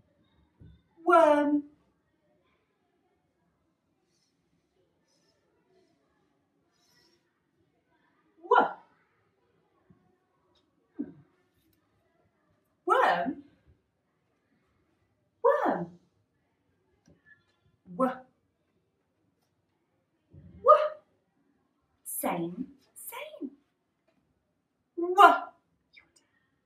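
A young woman speaks clearly in short, separate bursts, close by.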